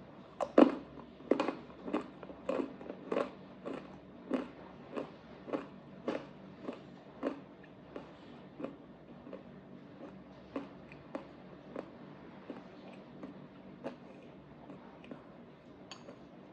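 A woman chews food loudly and wetly close to a microphone.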